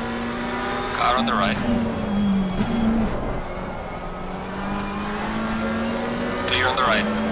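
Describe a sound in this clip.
Tyres squeal briefly through corners.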